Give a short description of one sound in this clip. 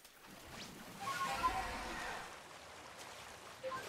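Water splashes as something rushes across a river.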